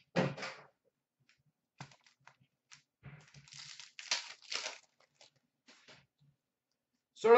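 A foil card pack crinkles and rustles as it is torn open by hand.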